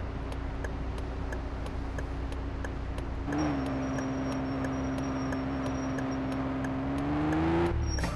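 A car engine idles, then revs and pulls away.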